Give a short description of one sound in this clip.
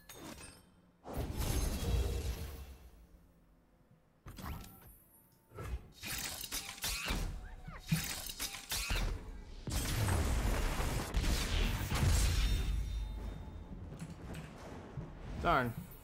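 Game sound effects whoosh and chime loudly.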